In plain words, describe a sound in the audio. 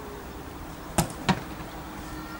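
A football is kicked hard with a sharp thud.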